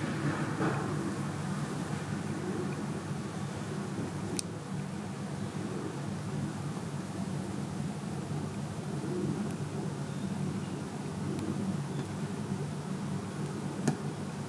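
A cat purrs softly and steadily close by.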